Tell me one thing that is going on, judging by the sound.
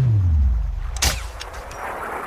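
A rifle fires a single loud shot.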